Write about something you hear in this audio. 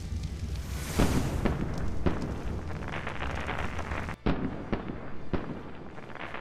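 Sharp blasts from a weapon ring out several times.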